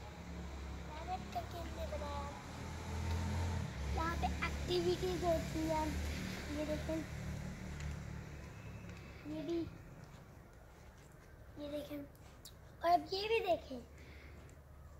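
A young girl talks and calls out nearby.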